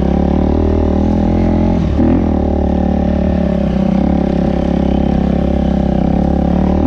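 A dirt bike engine buzzes loudly up close, revving up and down.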